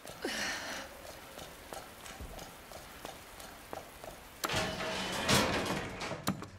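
Footsteps tread on a hard floor at a steady walking pace.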